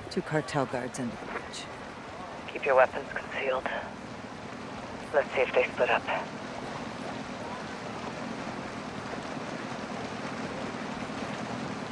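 A small boat motor hums steadily on the water.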